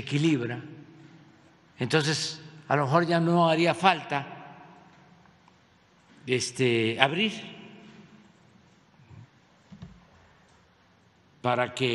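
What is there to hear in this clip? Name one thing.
An elderly man speaks calmly into a microphone in short bursts with pauses.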